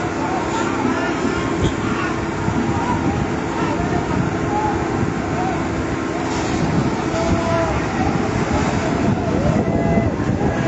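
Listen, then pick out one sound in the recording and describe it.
A crowd of people shouts and talks outdoors.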